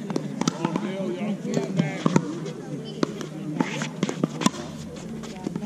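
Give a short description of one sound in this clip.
Paddles pop sharply against a plastic ball, back and forth.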